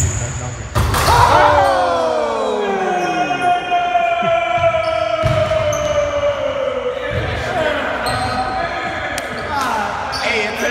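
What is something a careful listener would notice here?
Young men shout and cheer excitedly in an echoing hall.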